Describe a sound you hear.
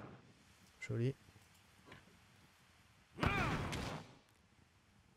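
Flames burst with a loud whoosh.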